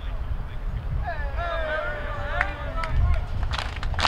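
A man addresses a team loudly outdoors.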